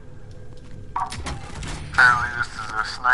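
A supply crate clanks open.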